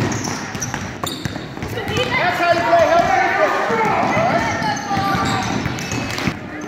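A basketball bounces on a wooden floor.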